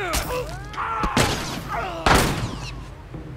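An axe strikes with a hard chop.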